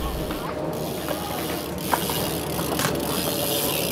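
Bicycle tyres roll across a smooth concrete floor.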